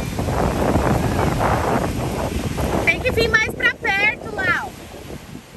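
Waves wash and break on a shore close by.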